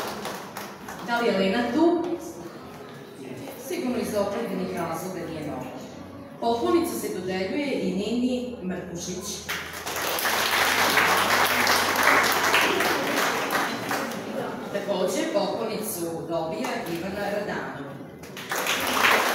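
A woman speaks calmly into a microphone, heard through a loudspeaker in an echoing room.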